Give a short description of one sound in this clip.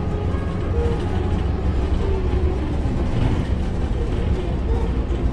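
Tyres hum steadily on the road.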